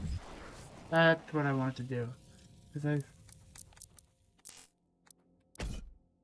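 Menu selections blip with short electronic tones.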